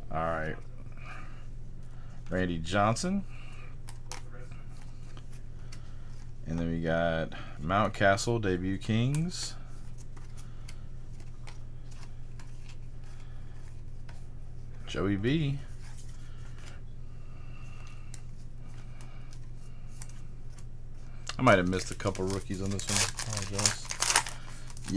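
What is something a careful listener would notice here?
A foil card wrapper crinkles and tears.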